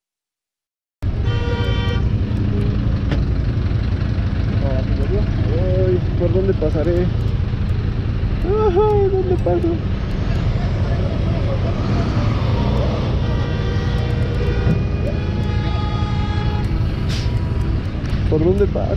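A large truck engine idles nearby in traffic.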